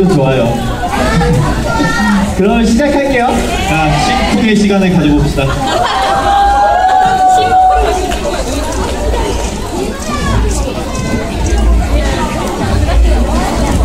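A crowd of young women screams and cheers nearby.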